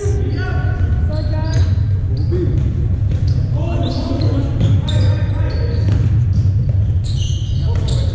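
A crowd of spectators murmurs in a large echoing hall.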